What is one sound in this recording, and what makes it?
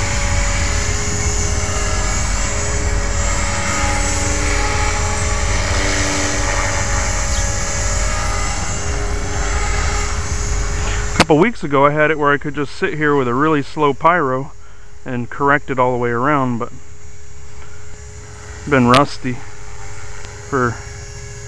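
A model helicopter's motor whines steadily overhead.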